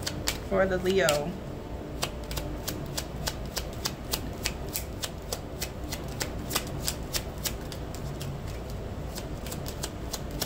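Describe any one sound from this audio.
Fingernails tap and click quickly on a hard case.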